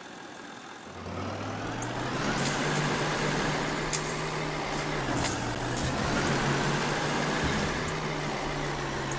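A truck engine rumbles and revs as the truck drives over rough ground.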